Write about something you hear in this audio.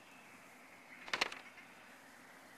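Paper rustles as a map is unfolded.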